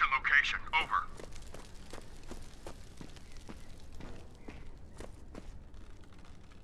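Footsteps thud on stone stairs at a steady pace.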